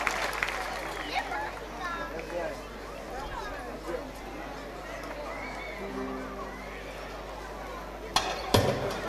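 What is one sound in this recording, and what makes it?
A woman speaks through a microphone over loudspeakers.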